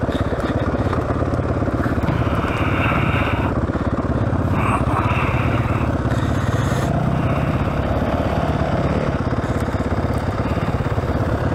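Another dirt bike engine buzzes and revs a short way off.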